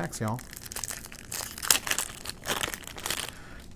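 A foil card pack crinkles as it is torn open.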